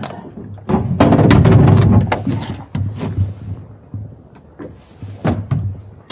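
A fish flaps and thumps against a boat deck.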